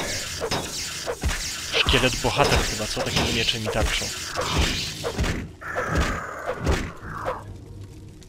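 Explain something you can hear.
Weapons clash against a shield in quick blows.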